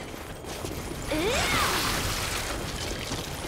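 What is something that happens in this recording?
A huge monster lets out a loud, rising roar.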